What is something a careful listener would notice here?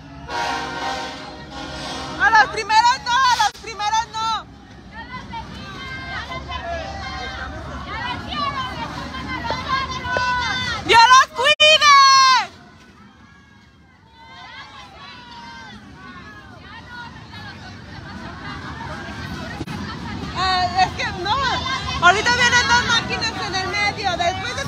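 A crowd of men and women talk and shout nearby outdoors.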